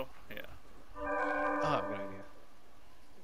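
A shimmering magical chime rings out and fades.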